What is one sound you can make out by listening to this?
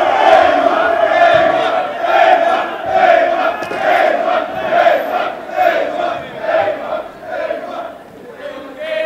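A large choir sings loudly together in a reverberant hall.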